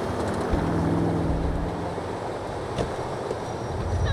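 A car door opens and shuts.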